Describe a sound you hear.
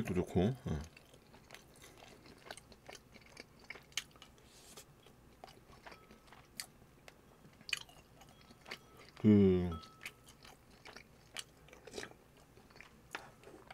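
A young man chews and smacks his lips close to a microphone.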